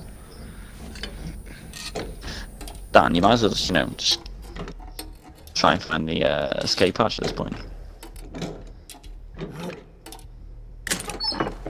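Hands rummage through a wooden chest with soft rattles and clicks.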